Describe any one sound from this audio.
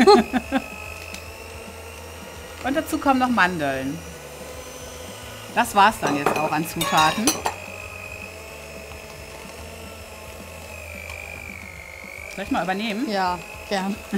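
An electric hand mixer whirs steadily.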